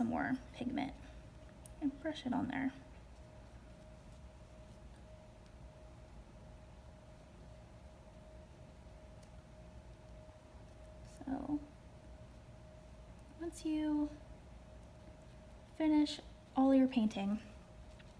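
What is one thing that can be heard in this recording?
A paintbrush brushes softly on paper.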